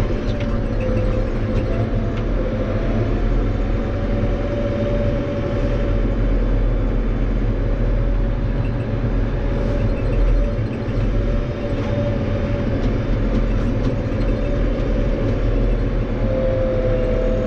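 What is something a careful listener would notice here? A diesel tractor engine drones steadily, heard from inside the cab while driving.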